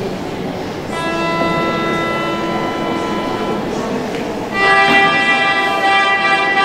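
A group of children play flutes together in steady, held notes.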